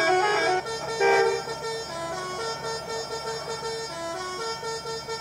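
Music with a melody plays throughout.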